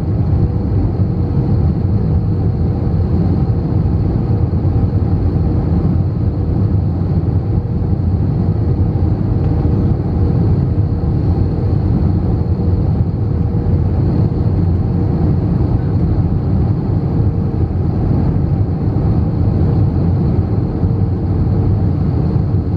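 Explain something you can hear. Jet engines roar steadily inside an airliner cabin.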